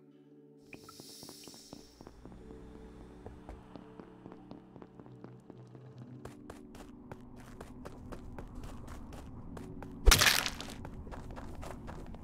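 Quick footsteps tap steadily.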